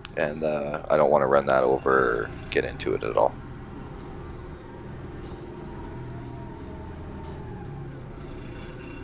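A heavy machine's engine rumbles steadily.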